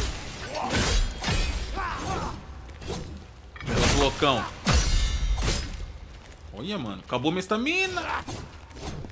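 Creatures grunt and cry out in pain.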